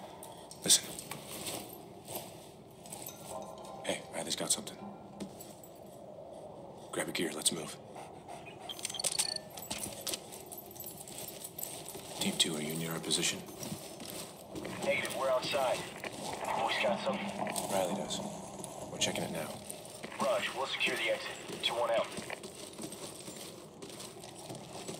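Footsteps crunch over gritty debris.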